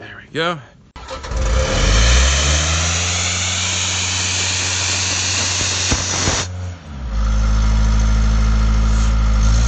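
An air compressor engine roars steadily and grows louder.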